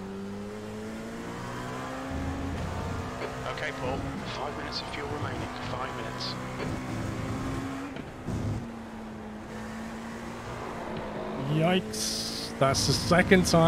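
A race car engine roars, rising and dropping in pitch as gears shift.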